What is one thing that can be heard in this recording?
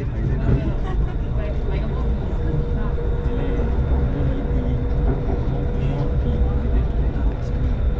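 Another train passes close by with a rushing whoosh.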